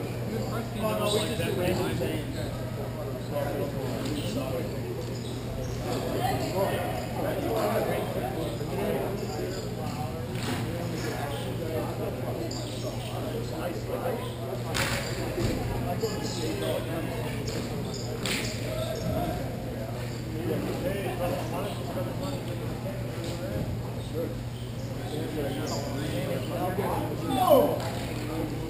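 Hockey sticks clack against a ball, echoing through a large hall.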